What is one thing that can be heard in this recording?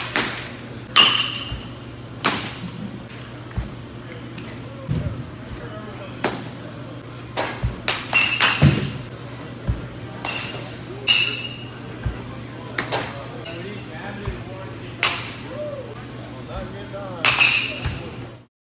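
Bats crack against balls now and then.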